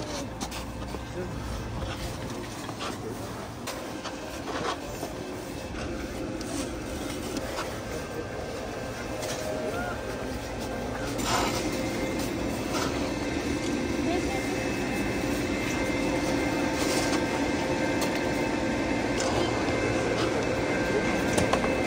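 Ski boots crunch on packed snow.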